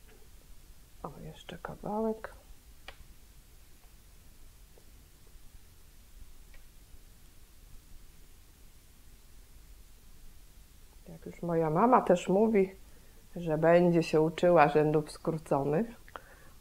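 A middle-aged woman speaks calmly into a close microphone.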